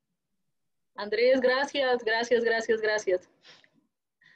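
A second young woman speaks calmly over an online call.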